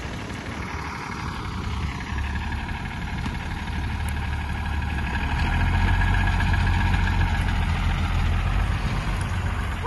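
A hydraulic loader whines as its bucket lifts.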